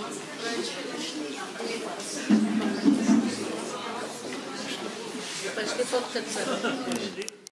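A crowd of men and women chatters in an echoing hall.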